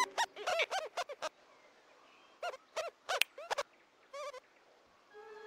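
A small animal chatters and squeaks in quick, high bursts.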